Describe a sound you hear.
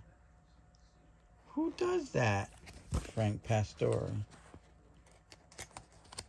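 Plastic card sleeves crinkle and tap softly as cards are handled.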